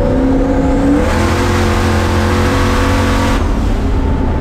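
Wind and road noise rush loudly past a car.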